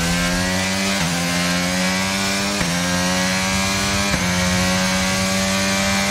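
A racing car engine screams at high revs, climbing in pitch and dropping briefly at each quick gear change.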